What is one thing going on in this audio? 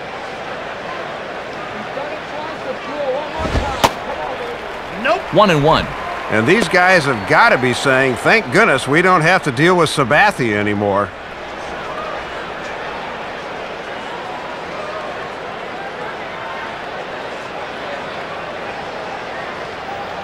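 A crowd murmurs steadily in a large ballpark.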